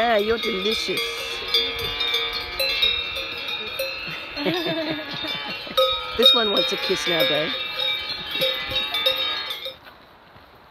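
Cowbells clang and ring close by.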